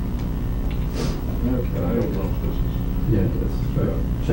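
An elderly man speaks calmly nearby.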